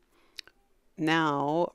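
A woman speaks loudly, close by.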